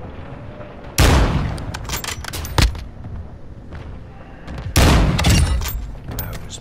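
A sniper rifle fires loud, booming shots.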